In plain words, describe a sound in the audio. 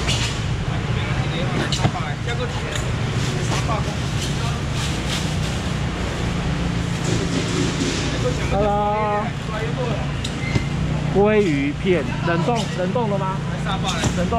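Styrofoam boxes squeak and thud as they are handled.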